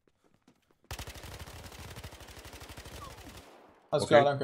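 Automatic gunfire rattles in a rapid burst.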